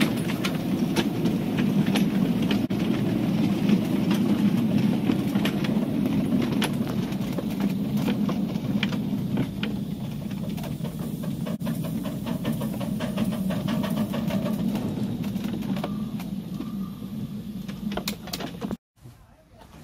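A small train rumbles steadily along the rails.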